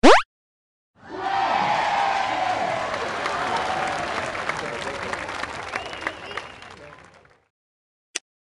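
A recorded crowd cheers loudly, then fades away.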